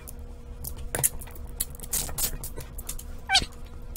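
A few tiles click softly into place.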